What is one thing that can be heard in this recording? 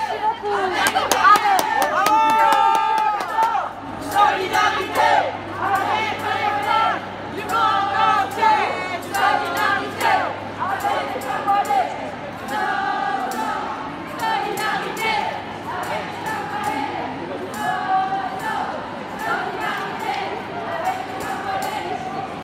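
A large crowd of marching people chants loudly in rhythm outdoors.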